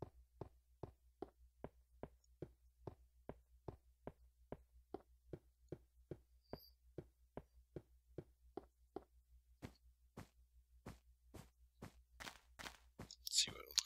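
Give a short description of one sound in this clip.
Footsteps tap steadily across ice and then crunch on snow.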